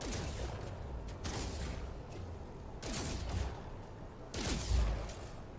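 A laser gun fires in short whooshing bursts.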